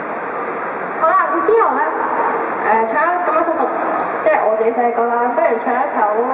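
A young woman talks through a microphone and loudspeakers.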